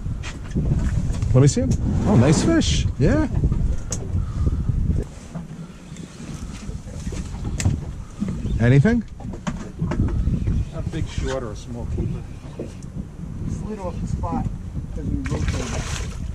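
A man talks excitedly nearby.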